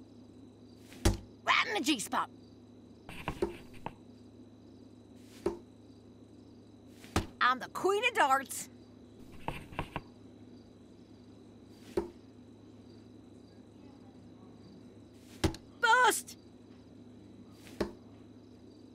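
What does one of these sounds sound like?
Darts thud sharply into a dartboard, one at a time.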